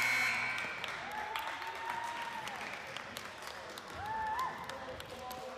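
Sneakers squeak sharply on a hard gym floor.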